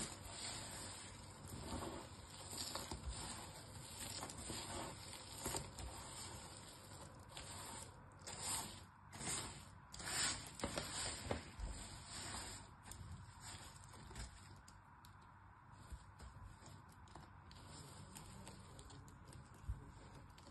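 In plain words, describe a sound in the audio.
Hands rustle and crunch through a pile of brittle crumbled pieces, close up.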